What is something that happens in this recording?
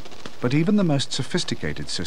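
A bat's wings flutter softly close by.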